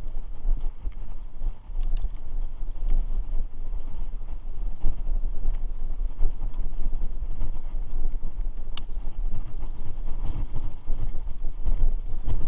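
A bicycle frame rattles with small clicks.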